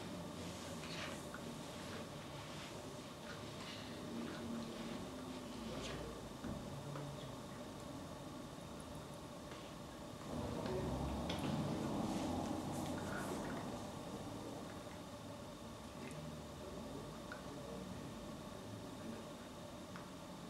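An elderly woman speaks with feeling, close by.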